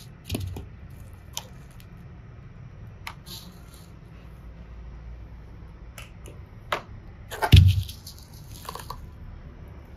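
Plastic toys knock and clatter as a hand handles them.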